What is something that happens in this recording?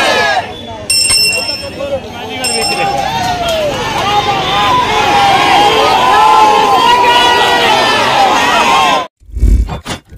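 Many women ululate in high, wavering cries.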